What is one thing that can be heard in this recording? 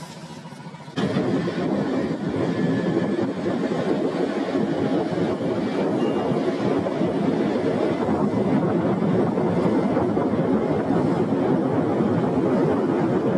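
Wind rushes loudly past while riding.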